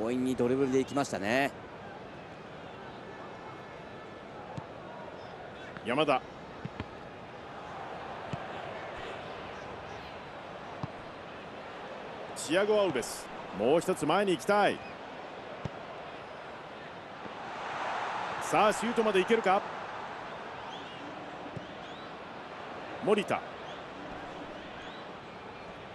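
A large stadium crowd murmurs steadily, swelling now and then.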